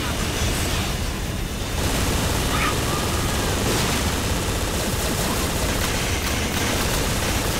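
Gunfire crackles rapidly.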